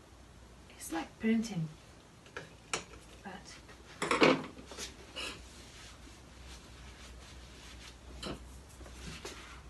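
Small tools clatter on a table.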